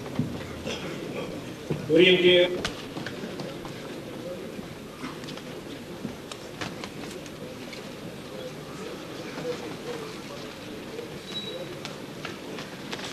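A crowd murmurs throughout a large echoing hall.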